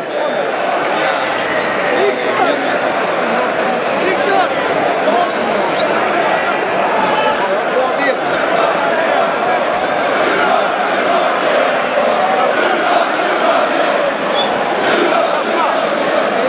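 A large crowd cheers and shouts loudly in a huge open stadium.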